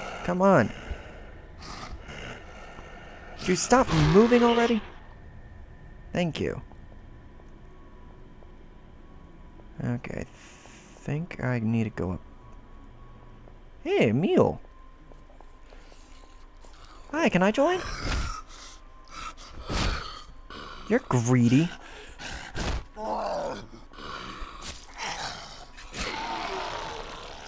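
A young man talks with animation into a headset microphone, close by.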